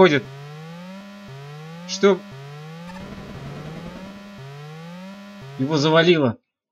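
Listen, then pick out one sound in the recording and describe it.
Electronic game music plays with repeated rising bleeps.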